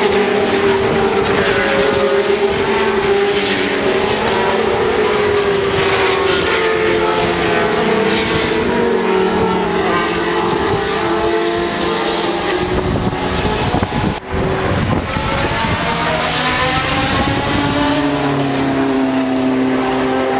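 Racing car engines roar loudly past, rising and falling in pitch as they shift gears.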